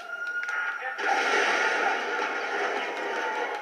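An explosion booms loudly through a television speaker.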